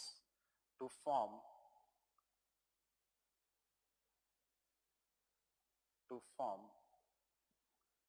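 A man speaks briefly and calmly into a microphone, with long pauses.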